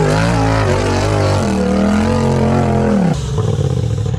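An off-road buggy engine revs hard and climbs in pitch.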